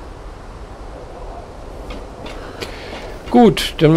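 Footsteps clang on a metal grating.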